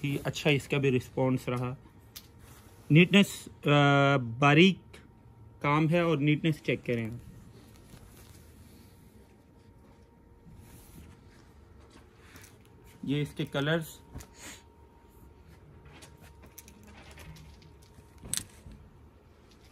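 Heavy fabric rustles softly as a hand smooths and lifts it.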